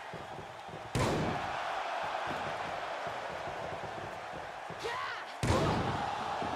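A body slams onto a wrestling mat with a loud thud.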